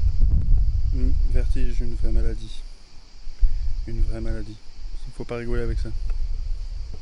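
A man speaks calmly close to the microphone.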